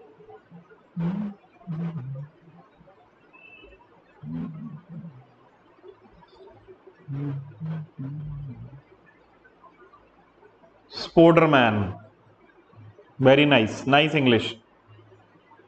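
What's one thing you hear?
A man speaks slowly and thoughtfully into a close microphone, with long pauses.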